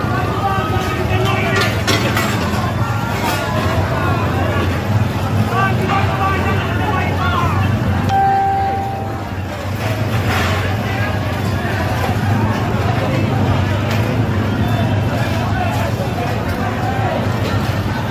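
A crowd of men and women shout and talk excitedly nearby.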